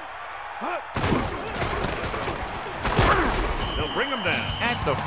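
Football players collide in a crunching tackle.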